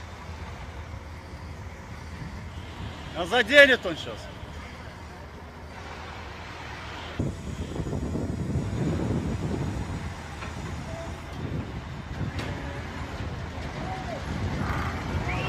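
A backhoe engine rumbles steadily.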